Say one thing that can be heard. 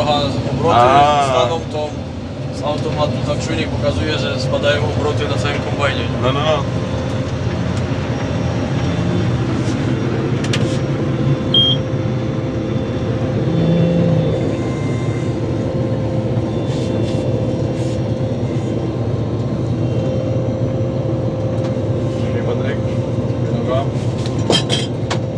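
A combine harvester's engine drones steadily from inside its cab.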